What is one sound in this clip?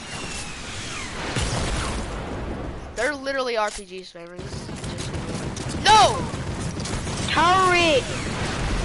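A gun fires repeated shots.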